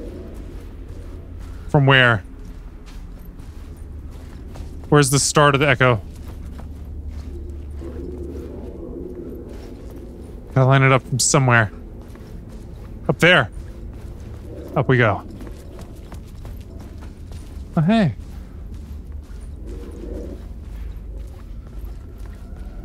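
Footsteps walk across a hard tiled floor.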